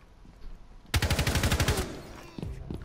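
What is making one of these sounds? Rapid gunfire rattles in a short, loud burst.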